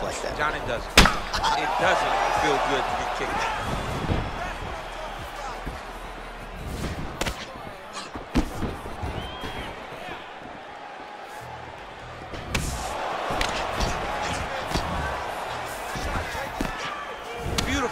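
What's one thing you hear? Punches thud sharply against a body.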